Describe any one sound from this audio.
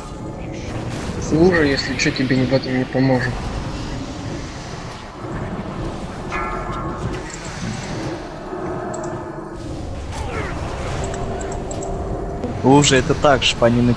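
Game spell effects crackle and boom during a battle.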